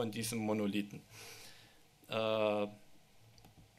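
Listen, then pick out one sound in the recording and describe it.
A man speaks into a microphone, with pauses.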